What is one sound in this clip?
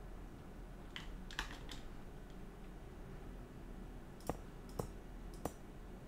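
Game blocks are placed with short, sharp thuds.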